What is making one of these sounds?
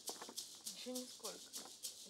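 A young woman speaks briefly.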